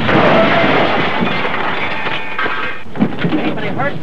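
A car crashes with a loud bang and clatter.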